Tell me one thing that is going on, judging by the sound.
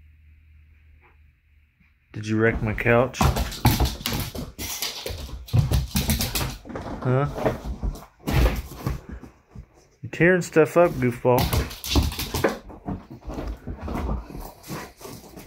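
A dog jumps on and off a couch with soft thuds.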